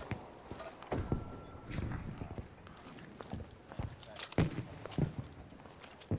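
Metal clicks and clatters as a rifle is handled and reloaded.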